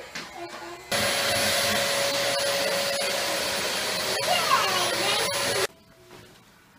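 A vacuum cleaner runs with a steady whir.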